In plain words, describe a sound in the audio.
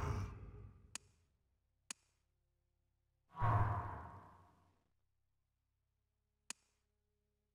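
Sharp menu clicks tick now and then.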